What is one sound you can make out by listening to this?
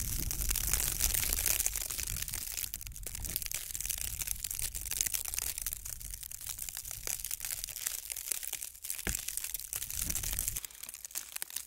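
Wind gusts outdoors with a low rumble.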